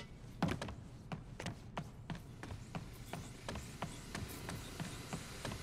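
Quick footsteps run on a hard floor.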